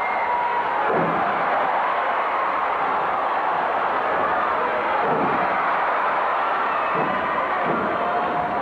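Wrestlers' bodies thud onto a wrestling ring mat.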